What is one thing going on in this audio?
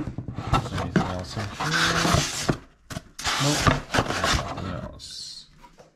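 A foam insert squeaks as it is pulled out of a box.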